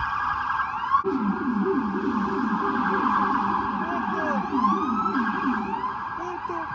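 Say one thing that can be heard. A police siren yelps in rapid, low pulses.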